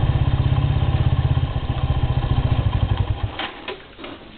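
A motorcycle engine idles nearby, then cuts off.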